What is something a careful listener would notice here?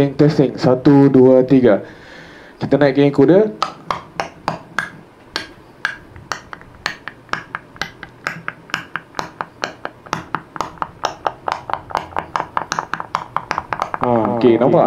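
A man beatboxes quick, sharp percussive sounds into a microphone, close up.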